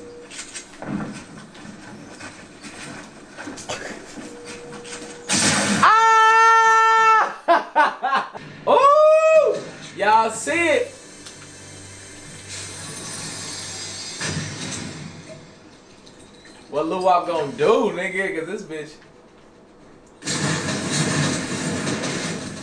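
Video game sounds play from a television.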